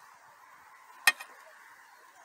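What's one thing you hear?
A plastic lid clicks sharply.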